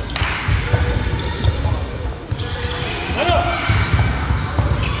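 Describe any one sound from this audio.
A basketball bounces on the court with hollow thuds.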